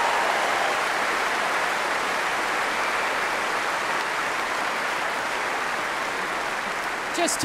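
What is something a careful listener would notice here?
A large crowd applauds steadily in a wide open space.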